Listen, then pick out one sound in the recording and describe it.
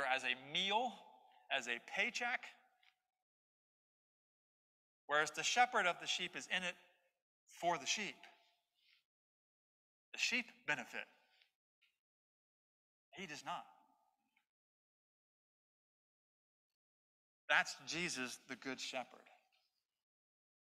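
A man preaches through a microphone in a large room, speaking calmly with pauses.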